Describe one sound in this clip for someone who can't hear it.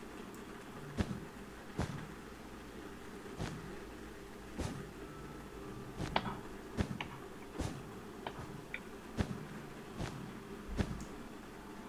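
Blocks snap into place with short, sharp clicks, one after another.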